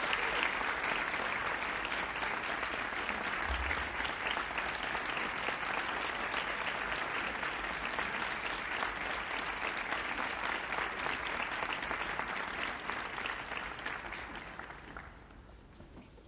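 A large crowd applauds outdoors, then the applause fades away.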